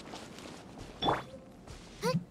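A bright magical burst rings out with a shimmering chime.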